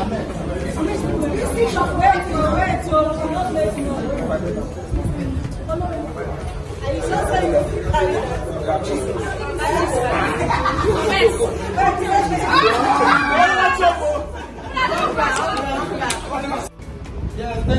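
Young people cheer and laugh loudly.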